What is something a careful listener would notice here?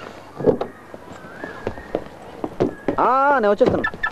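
A car door clicks open.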